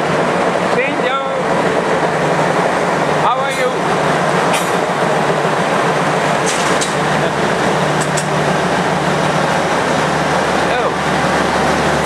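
Metal wheels squeal on the rails.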